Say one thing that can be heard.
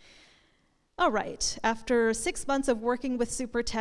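A woman speaks clearly to an audience through a microphone.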